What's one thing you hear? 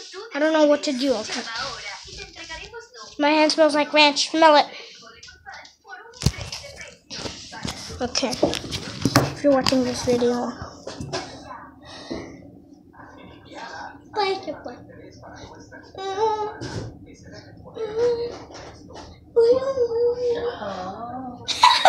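A young boy talks and sings close up with animation.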